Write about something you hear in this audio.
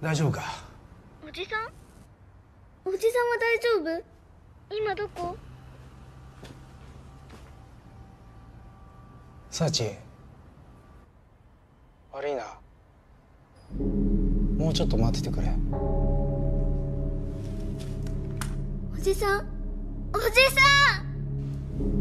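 A young girl speaks quietly into a phone.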